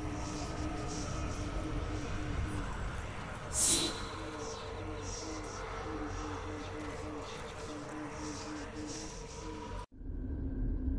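Magic spells crackle and whoosh in a busy fight.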